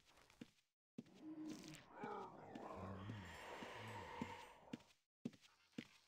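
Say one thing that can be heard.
A man talks close to a microphone.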